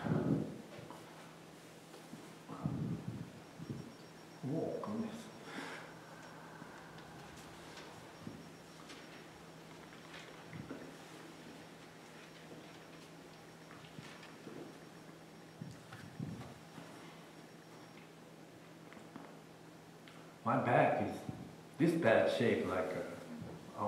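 An older man speaks slowly, with long pauses, in a large echoing hall.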